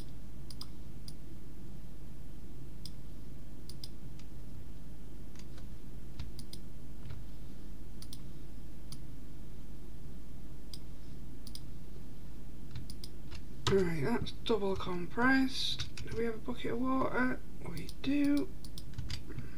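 Soft clicks sound as items are moved around.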